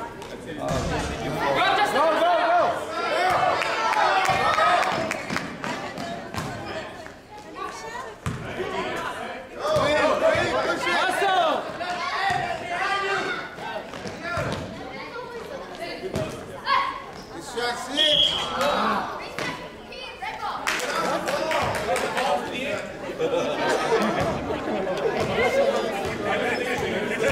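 A basketball bounces on a gym floor.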